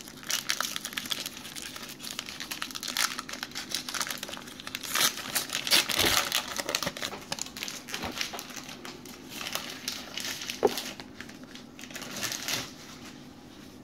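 A foil card pack wrapper crinkles and tears.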